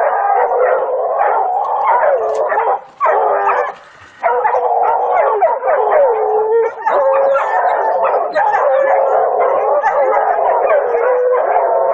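Dogs whine and yelp in high, excited bursts close by.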